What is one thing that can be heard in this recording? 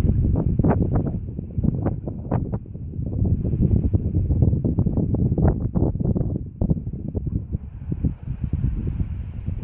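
Small waves lap on open water.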